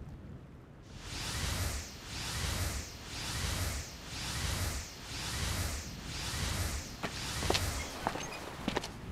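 Waves wash rhythmically onto a shore.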